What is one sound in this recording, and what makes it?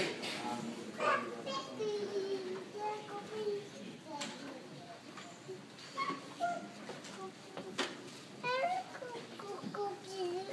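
A woman speaks into a microphone over loudspeakers.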